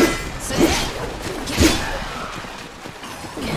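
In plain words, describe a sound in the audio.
Heavy blades clash and strike with loud metallic impacts.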